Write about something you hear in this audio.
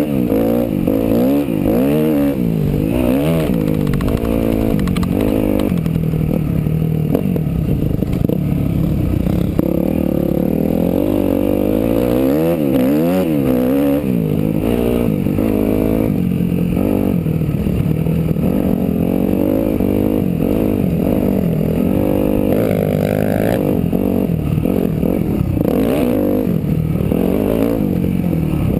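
A dirt bike engine revs loudly up close, rising and falling as it shifts gears.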